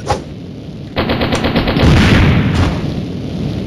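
A submachine gun fires a rapid burst.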